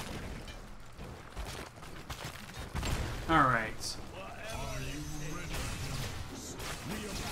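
Magic blasts and weapon hits crackle and thud in a busy fight.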